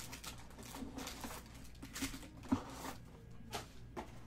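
Cardboard boxes rustle and knock as they are handled.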